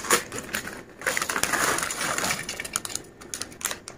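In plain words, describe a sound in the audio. Crisps rattle as they pour out of a packet onto a plate.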